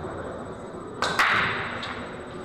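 A cue strikes a rack of pool balls with a loud crack as they scatter.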